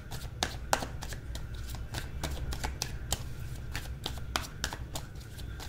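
Playing cards riffle and snap as they are shuffled close by.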